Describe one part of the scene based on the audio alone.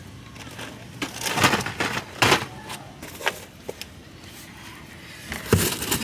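Plastic grocery bags rustle and crinkle as they are handled.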